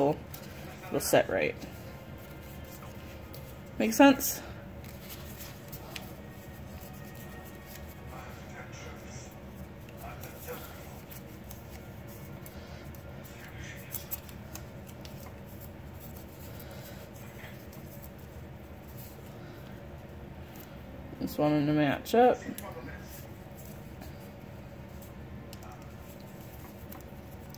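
Paper crinkles and rustles softly as it is folded by hand.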